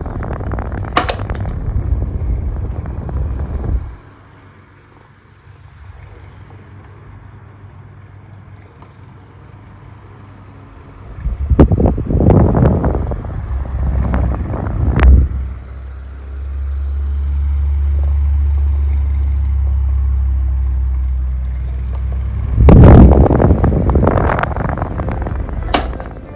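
A fan button clicks.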